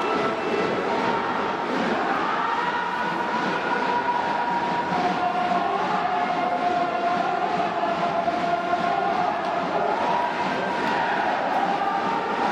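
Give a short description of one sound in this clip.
A large crowd cheers and chants steadily in a big stadium.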